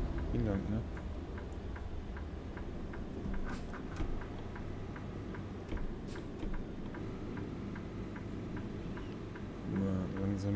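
A turn signal ticks at a steady pace.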